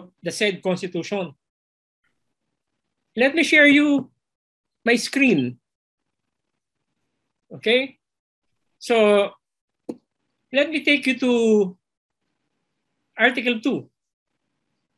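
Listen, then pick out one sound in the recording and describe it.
A middle-aged man speaks calmly in short phrases over an online call.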